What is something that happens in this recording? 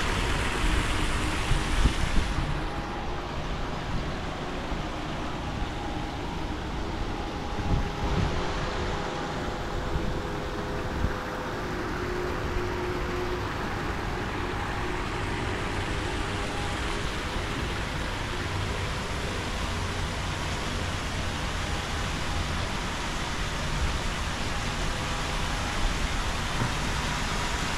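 Outdoors, a light wind rumbles.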